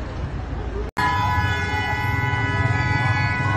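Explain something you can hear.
Flames roar from a burning car.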